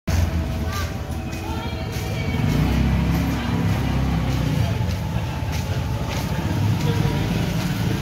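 A motorbike engine hums nearby as it rides along.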